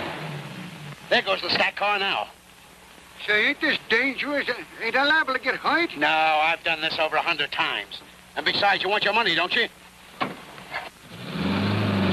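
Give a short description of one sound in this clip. A man talks with animation close by.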